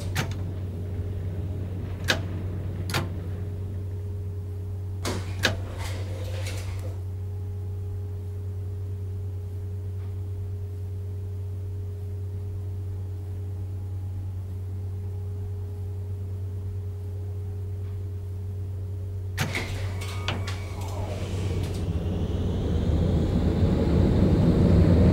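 A tram's motor hums steadily while standing.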